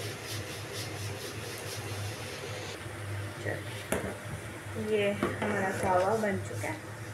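Liquid bubbles gently in a pot.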